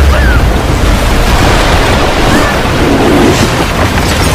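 A torrent of water rushes and crashes loudly.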